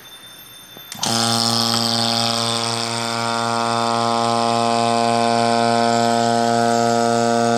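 An electric vacuum pump motor hums steadily.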